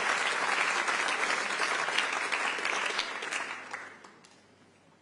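A large audience applauds and cheers in an echoing hall.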